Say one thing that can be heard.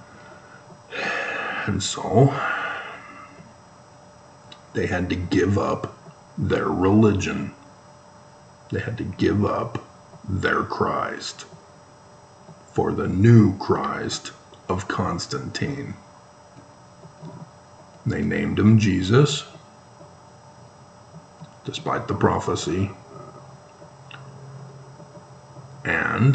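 A middle-aged man speaks calmly and close up, in short phrases with pauses.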